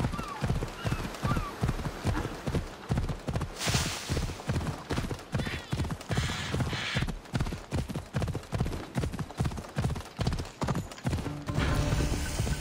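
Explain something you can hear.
A horse's hooves pound the ground at a steady gallop.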